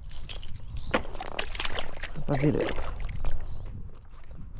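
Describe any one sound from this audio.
A fish splashes into the water close by.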